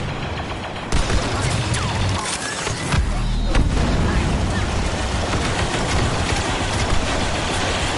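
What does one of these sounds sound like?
Loud explosions boom.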